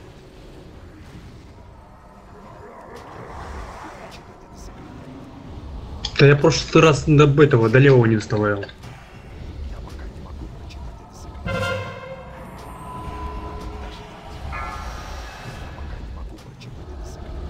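Magic spells whoosh and crackle in a busy battle.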